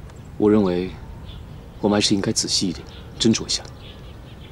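A young man speaks calmly and seriously.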